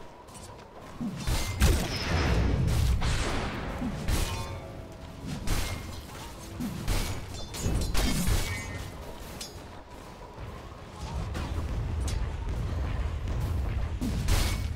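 Spell blasts and weapon hits crackle and thud in a video game fight.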